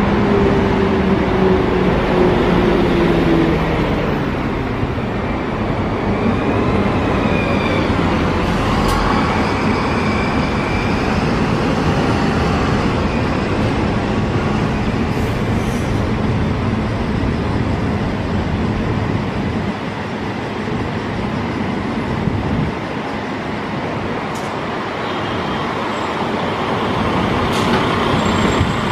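A bus engine rumbles close by.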